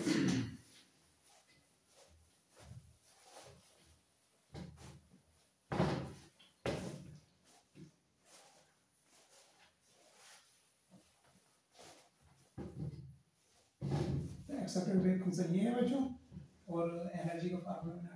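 A cloth rubs and squeaks across a whiteboard.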